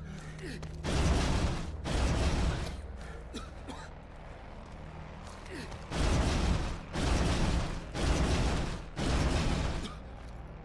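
A heavy object scrapes loudly along the ground in several bursts.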